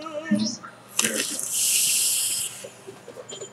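A vaping device hisses steadily as a man draws on it.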